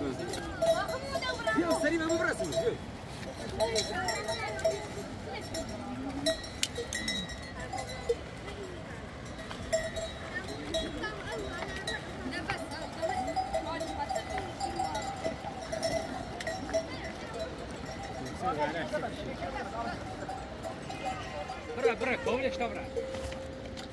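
Goats bleat loudly and often, close by.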